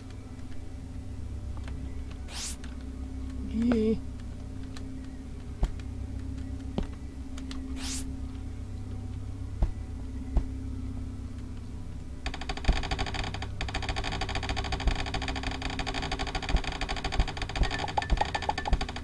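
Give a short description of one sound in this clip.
Rocks break with short crunching clicks as a tool digs.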